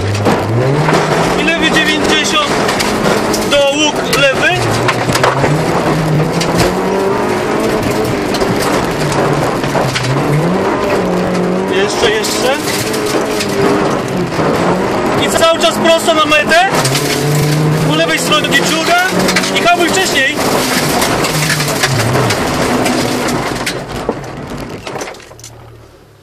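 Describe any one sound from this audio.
A rally car engine revs hard and roars.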